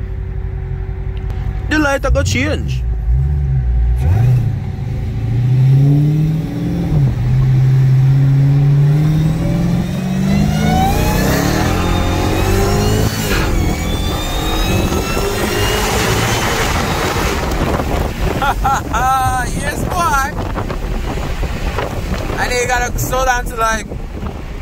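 A car engine roars loudly, revving higher and higher as the car speeds up.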